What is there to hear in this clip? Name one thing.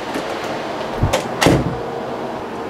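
A door handle clicks and a door opens.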